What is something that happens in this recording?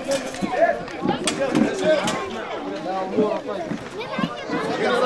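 A crowd of men and children talk over one another close by.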